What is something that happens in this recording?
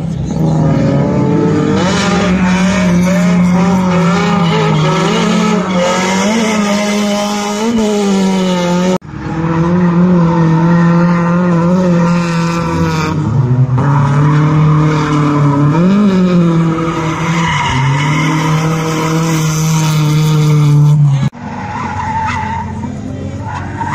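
A car engine roars and revs hard close by.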